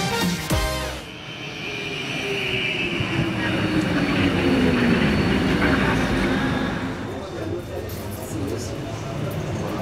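A tram hums quietly while standing at a platform.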